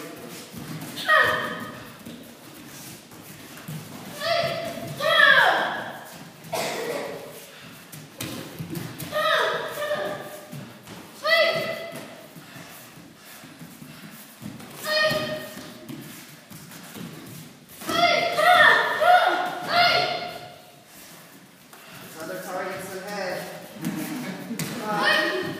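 Children give sharp, high shouts as they spar.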